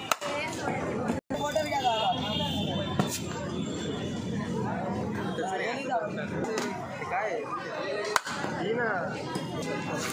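A busy crowd of people chatters outdoors.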